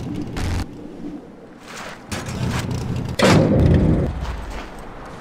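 Tyres crunch over dirt.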